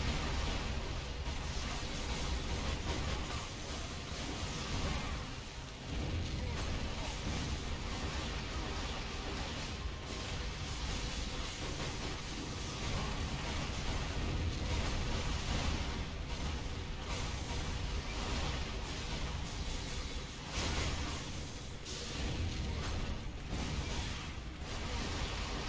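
Magic spells crackle and burst loudly in a game battle.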